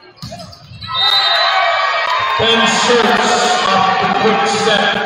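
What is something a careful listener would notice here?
Young men cheer loudly together after the rally.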